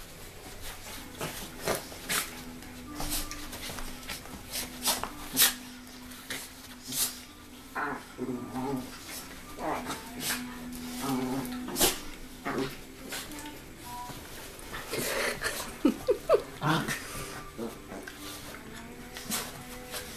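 Dogs growl playfully.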